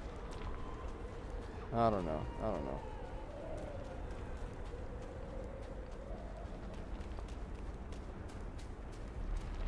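Footsteps run quickly over sand and gravel.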